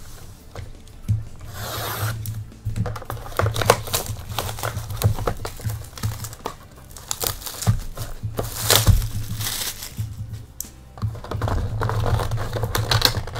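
Cardboard boxes rustle and scrape as hands handle them.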